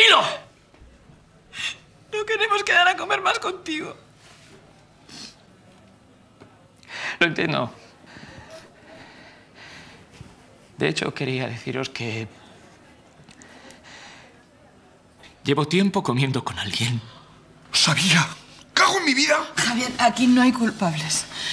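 A young woman speaks in an upset, tearful voice.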